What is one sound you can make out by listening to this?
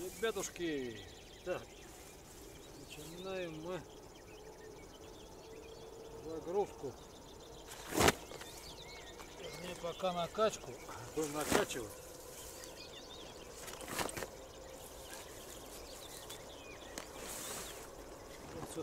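A rubber boat rustles as it is dragged and folded on grass.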